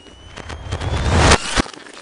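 Fireworks crackle and pop overhead.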